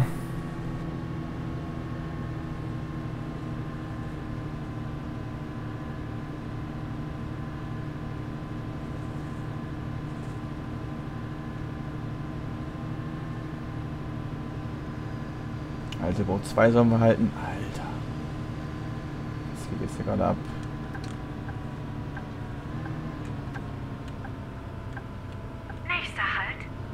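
A diesel bus engine drones at low speed.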